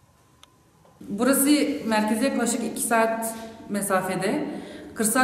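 A young woman speaks calmly and with animation into a microphone, close by.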